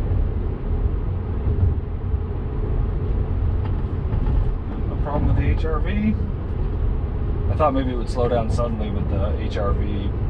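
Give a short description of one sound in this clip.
A car's tyres rumble steadily on the road from inside the cabin.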